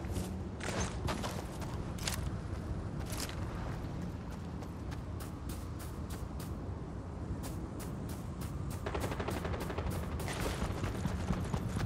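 Quick footsteps crunch on sand and gravel.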